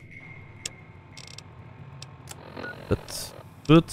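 Short electronic clicks sound as a handheld device's menu tabs switch.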